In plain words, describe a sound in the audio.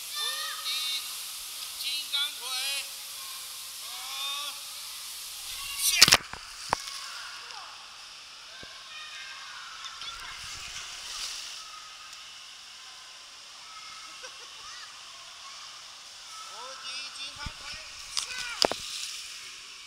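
Water splashes as children play in a pool.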